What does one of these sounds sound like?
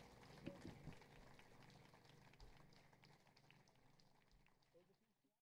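Drums tap lightly.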